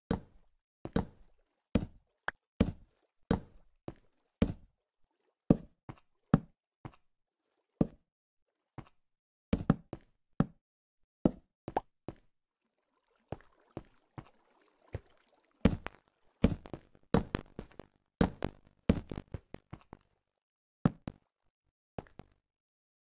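Footsteps tread on stone.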